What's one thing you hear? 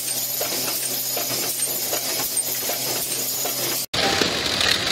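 An automatic machine whirs and clatters steadily.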